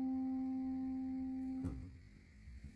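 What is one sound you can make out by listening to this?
A piano chord rings out and is cut off.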